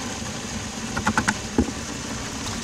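A metal bucket knocks and clanks against a mixer.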